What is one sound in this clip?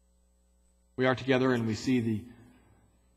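A man speaks into a microphone, echoing in a large hall.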